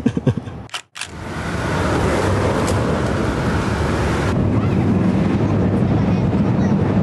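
Traffic rumbles steadily along a busy city street.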